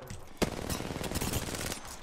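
Gunfire from a game rattles in quick bursts.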